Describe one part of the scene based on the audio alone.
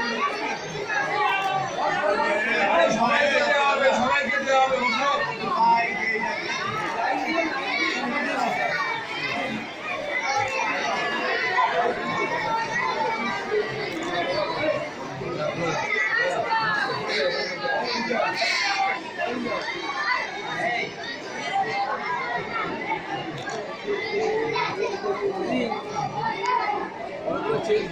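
A crowd of men, women and children chatter close by.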